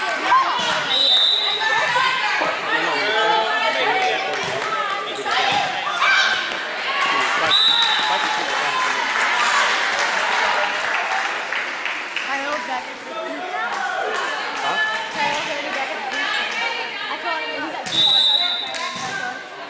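A whistle blows shrilly in short bursts.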